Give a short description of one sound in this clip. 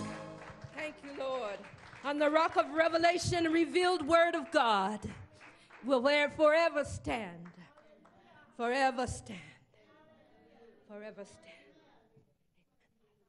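A woman sings with feeling into a microphone.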